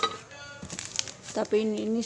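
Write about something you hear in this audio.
Plastic snack packets rustle as a hand handles them.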